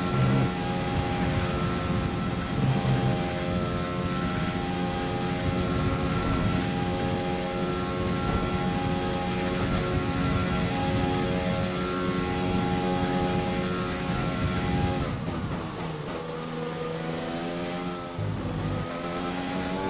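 A racing car engine screams at a high, steady pitch, then drops sharply as the car slows and climbs again.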